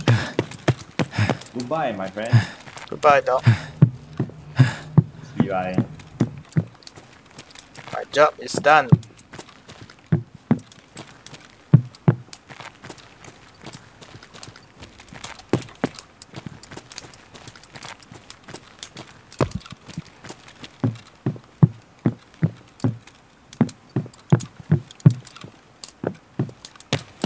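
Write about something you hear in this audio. Footsteps walk at a steady pace on a hard floor.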